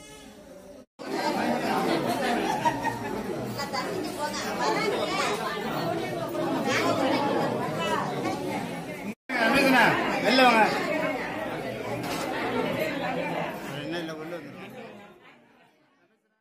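A crowd of women and men chatter and call out close by.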